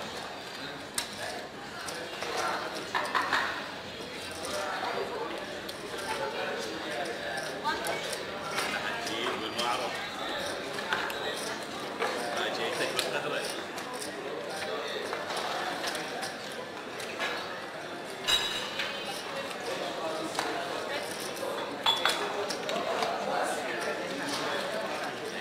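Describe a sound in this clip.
Plastic chips clack and click as they are stacked and pushed across a table.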